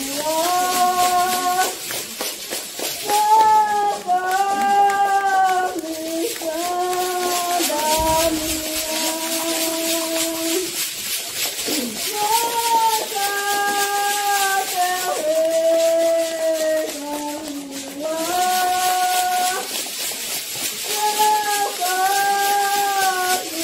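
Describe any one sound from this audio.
A middle-aged woman sings loudly nearby in long held phrases.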